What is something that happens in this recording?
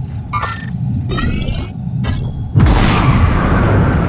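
Hands clang on a metal ladder while climbing.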